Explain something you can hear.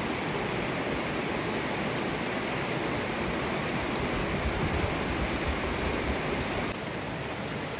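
Thin bamboo strips rustle and scrape as they are wound tightly around a log.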